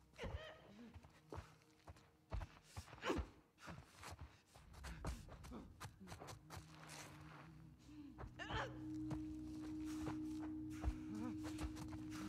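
Footsteps creep softly across a floor.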